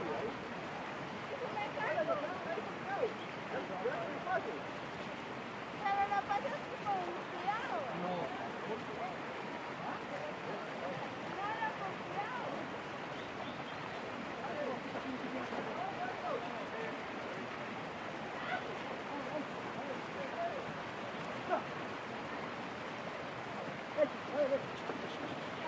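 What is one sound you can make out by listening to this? A stream rushes steadily over stones.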